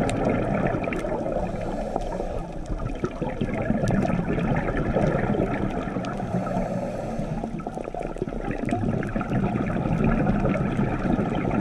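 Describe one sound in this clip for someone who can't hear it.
A steady muffled underwater rush fills the air, with faint crackling clicks.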